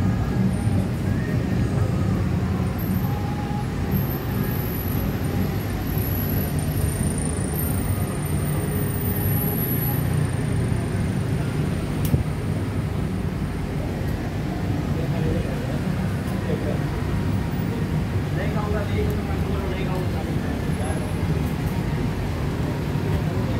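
A vehicle's engine rumbles steadily up close while moving through traffic.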